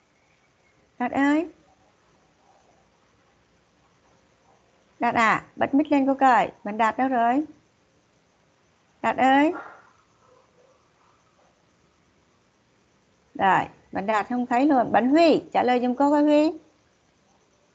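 A woman speaks in short phrases over an online call.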